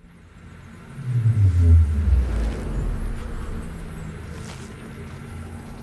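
A deep magical whoosh swells and slowly fades.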